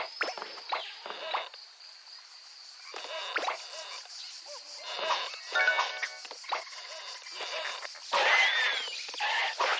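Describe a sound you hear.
Bright, cartoonish chimes and boings play in short bursts as a game character jumps and collects items.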